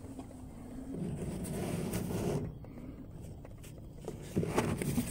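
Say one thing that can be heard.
A hand rustles against pleated paper.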